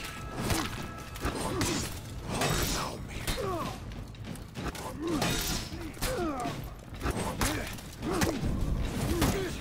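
Swords clash and clang against a wooden shield.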